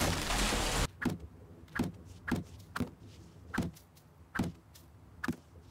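A bush is hacked apart with sharp short strikes.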